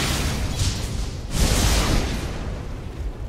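Magical blasts whoosh and crackle in a battle.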